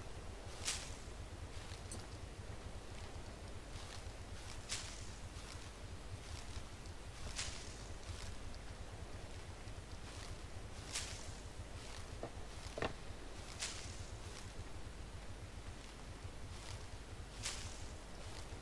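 Leaves rustle sharply as plants are picked by hand.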